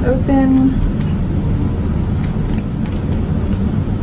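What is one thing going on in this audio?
A small metal part clicks down onto a hard surface.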